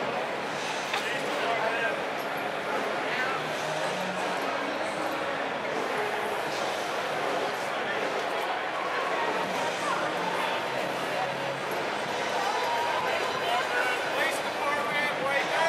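A busy street murmurs outdoors.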